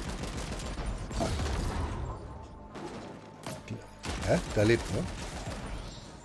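Gunshots and blasts crackle in quick bursts.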